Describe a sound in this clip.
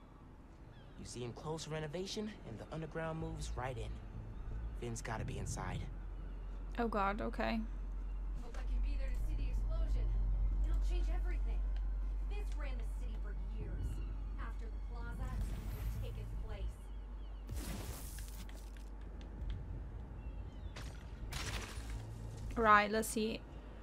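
A young woman speaks close to a microphone in a casual tone.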